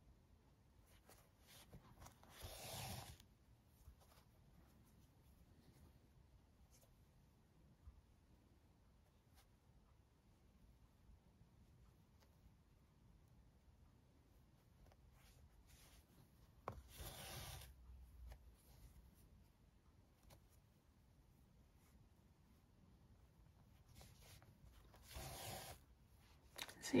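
Yarn softly rustles as it is pulled through knitted fabric.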